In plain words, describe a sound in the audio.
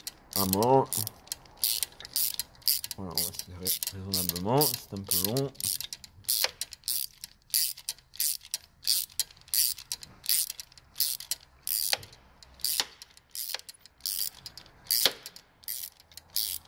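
A ratchet wrench clicks rapidly as it is turned back and forth.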